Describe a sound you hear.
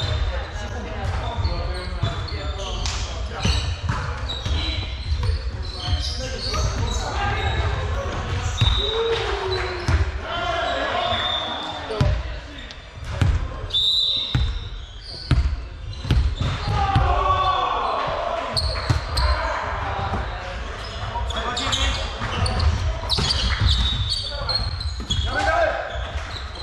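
A volleyball is hit with sharp smacks in a large echoing hall.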